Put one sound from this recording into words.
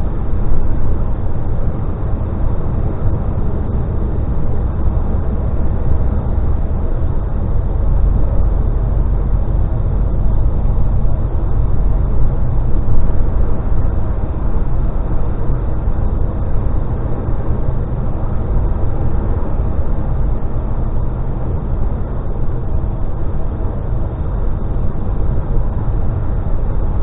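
Tyres hiss on a wet road surface.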